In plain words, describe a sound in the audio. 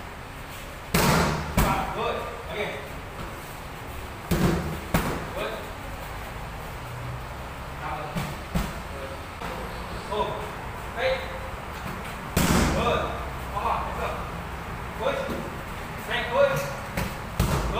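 A man calls out instructions.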